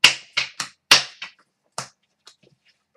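Playing cards snap and tap sharply.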